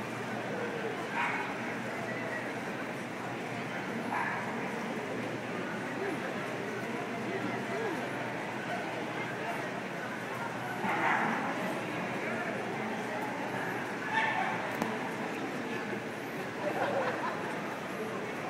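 An adult calls short commands to a dog from across a large echoing hall.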